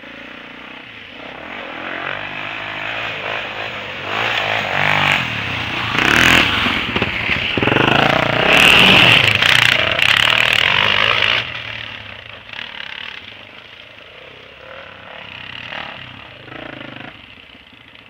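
Small motorbike and quad engines buzz and rev, growing louder as they pass close by, then fade.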